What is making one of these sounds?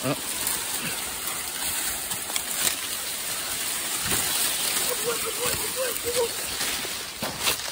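Dry corn leaves rustle and crackle as a person pushes through them.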